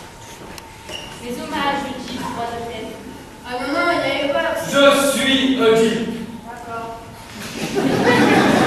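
A young man speaks with animation on a stage.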